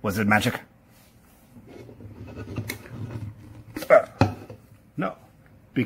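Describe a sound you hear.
A glass jar clinks as it is lifted off a wooden table.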